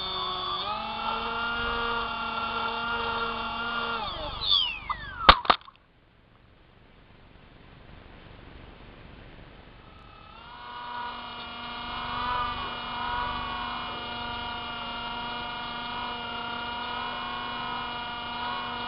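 Small drone propellers whine with a high, steady buzz.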